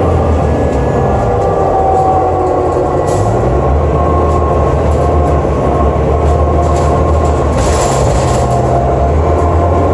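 A bus engine hums and whines steadily from inside the moving bus.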